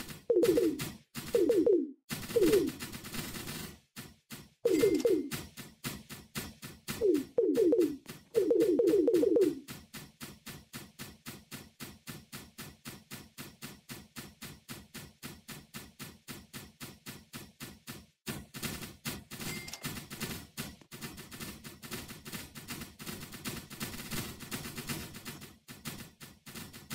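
Game guns fire rapid, steady bursts of shots.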